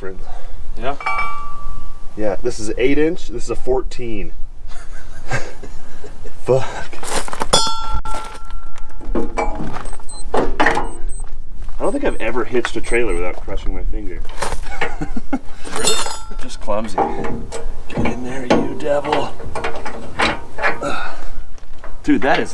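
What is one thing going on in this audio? Metal parts clank and clink as a trailer hitch is handled.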